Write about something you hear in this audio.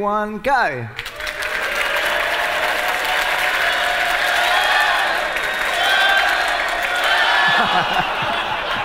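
A large audience claps and cheers in a big hall.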